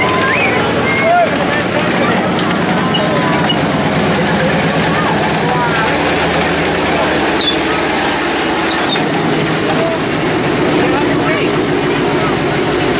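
Metal tank tracks clatter and squeal on the road.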